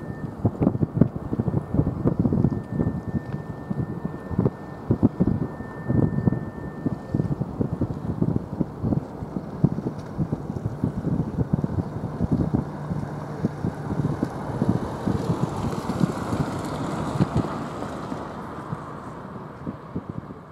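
A large ship's engines rumble low and steadily.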